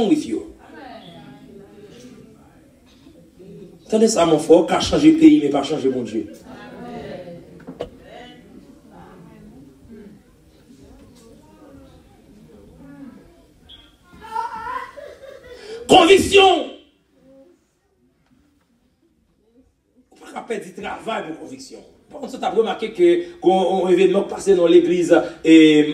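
A man preaches loudly over a loudspeaker in an echoing hall.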